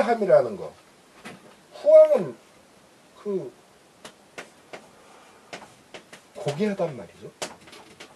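An elderly man speaks slowly and calmly close by, with long pauses.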